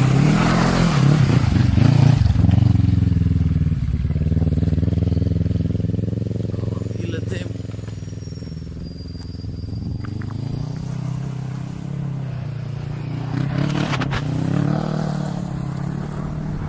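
A quad bike engine revs loudly, then fades into the distance and returns.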